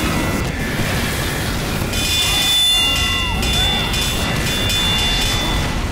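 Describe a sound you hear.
Rockets explode with loud booms.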